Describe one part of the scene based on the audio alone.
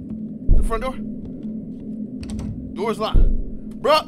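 A locked door handle rattles.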